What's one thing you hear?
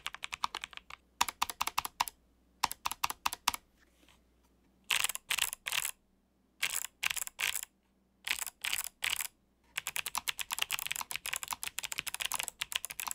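Clicky keyboard keys snap sharply in short bursts.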